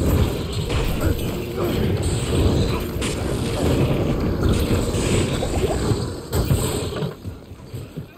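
Blows strike monsters in a fight.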